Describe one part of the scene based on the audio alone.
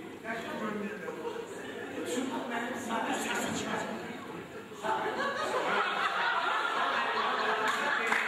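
An elderly man laughs.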